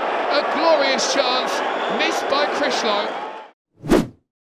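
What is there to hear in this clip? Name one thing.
A large stadium crowd cheers and chants.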